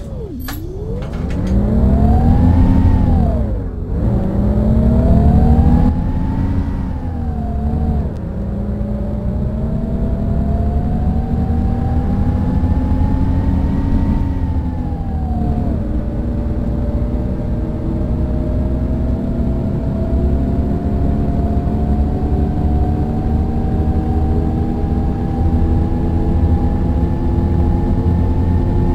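A bus engine hums and revs, rising and falling in pitch as the bus speeds up and shifts gears.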